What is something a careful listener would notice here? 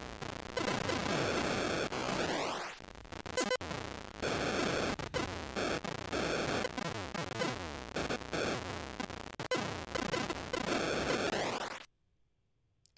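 Electronic game sounds buzz and warble loudly.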